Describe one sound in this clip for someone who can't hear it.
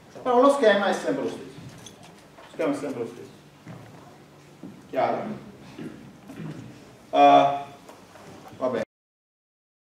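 A middle-aged man lectures calmly, heard through a microphone.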